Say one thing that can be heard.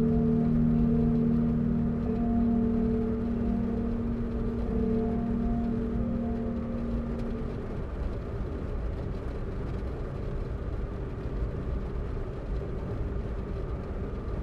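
Tyres roll and hiss on a wet road.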